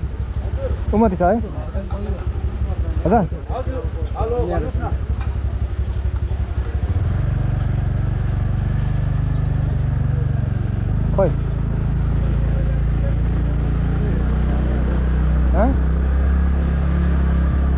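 A motorbike engine hums steadily and grows louder as the motorbike rides on.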